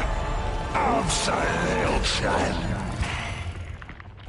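A large monster growls and roars.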